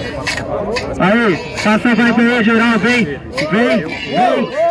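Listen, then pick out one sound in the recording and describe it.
A young man raps loudly into a microphone through a loudspeaker.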